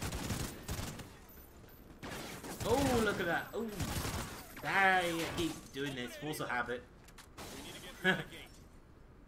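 Gunfire crackles in quick bursts.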